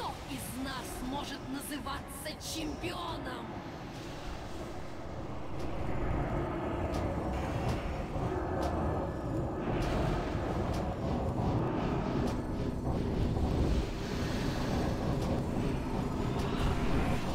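Spell effects whoosh and crackle during a game battle.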